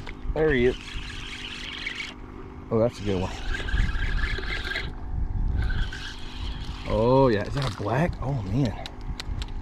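Water laps against the side of a boat.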